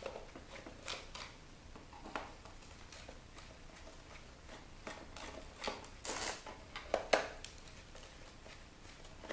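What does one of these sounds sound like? Gloved hands rub and scrape over a plastic panel.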